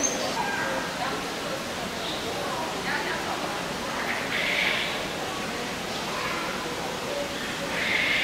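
A parrot squawks nearby.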